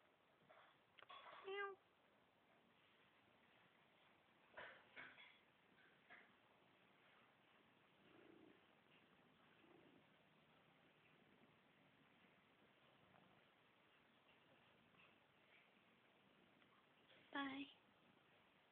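A cat meows loudly close by.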